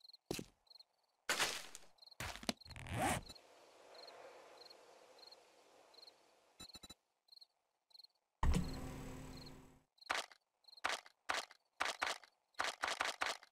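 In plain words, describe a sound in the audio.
A game's menu clicks sharply, again and again.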